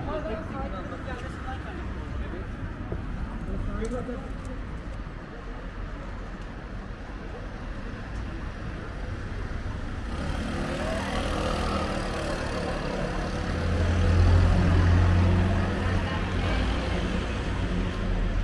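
Street hum and traffic noise carry around outdoors.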